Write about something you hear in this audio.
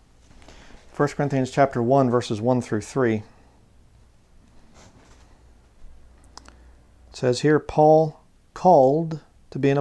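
A man reads aloud calmly, close to a microphone.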